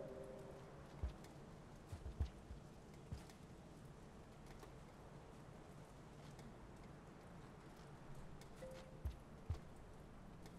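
Soft thuds sound as a small creature jumps and lands.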